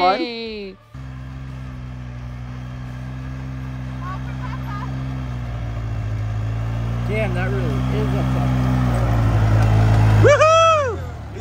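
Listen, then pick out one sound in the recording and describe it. A quad bike engine drones steadily and grows louder as it approaches.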